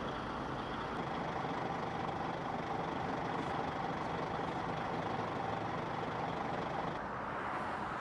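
A diesel tanker truck engine runs.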